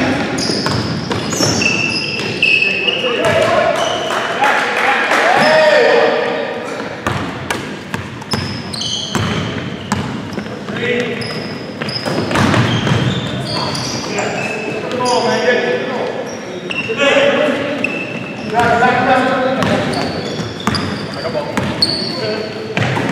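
Men shout and call out to each other across the court.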